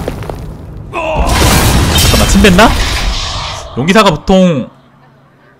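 A magic blast bursts with a bright crackling whoosh.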